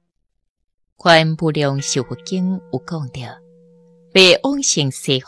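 A middle-aged woman speaks calmly and slowly into a microphone.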